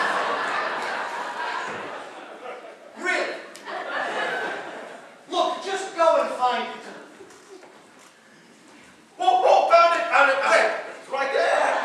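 A group of young women sing together, heard from a distance in a large hall.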